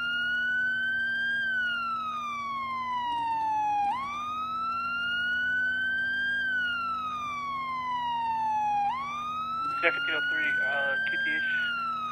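A siren wails steadily, rising and falling in slow cycles.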